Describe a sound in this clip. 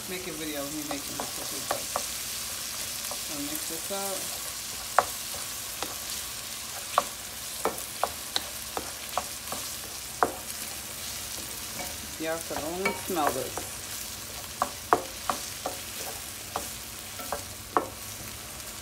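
A spatula scrapes and taps against a pan.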